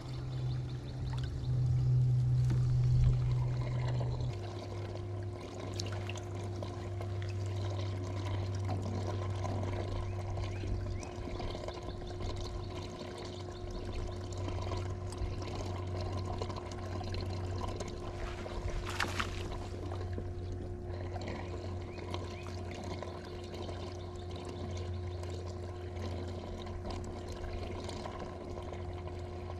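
A fishing reel whirs and clicks as line is wound in.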